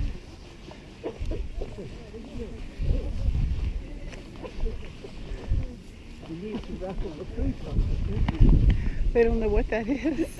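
A man talks nearby in a relaxed tone.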